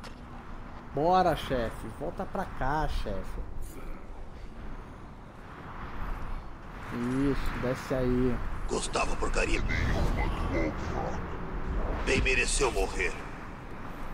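A middle-aged man speaks casually into a headset microphone, close by.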